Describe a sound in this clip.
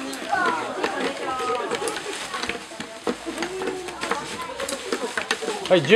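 Peanut shells click and rattle against trays.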